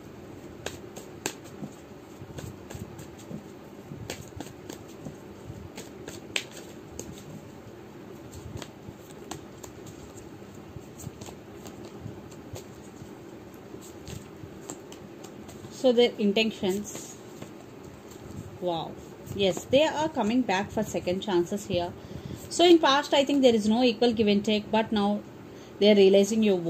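Playing cards rustle and tap softly as they are shuffled and laid down.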